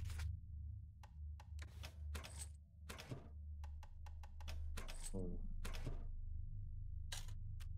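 Menu buttons click sharply several times.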